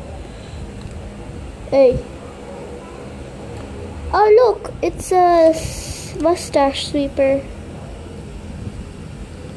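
Hands handle small plastic toy figures with soft clicks.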